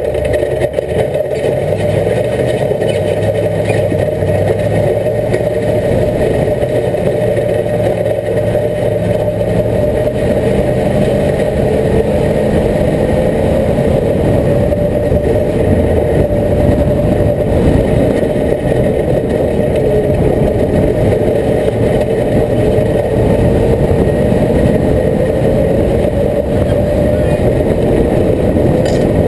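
An off-road vehicle's engine rumbles steadily as it drives over rough ground.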